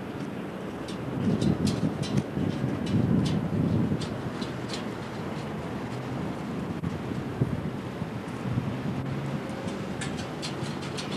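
A dog's paws tap and clank on metal ladder steps.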